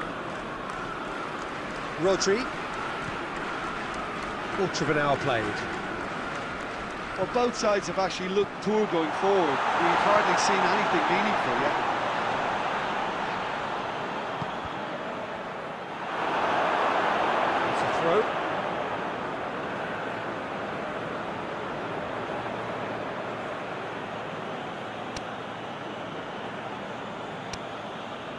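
A stadium crowd roars and cheers, swelling now and then.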